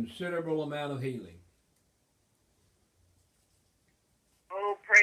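An elderly man speaks calmly and close by, with pauses.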